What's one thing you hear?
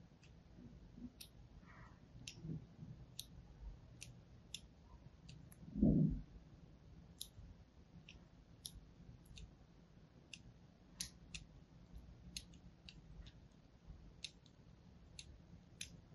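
A thin blade scrapes and ticks lightly into soft soap, close by.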